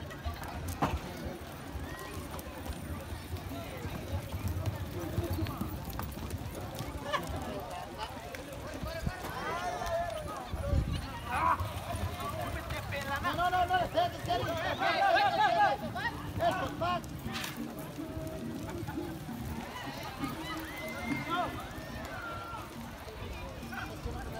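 Horses' hooves thud on soft dirt.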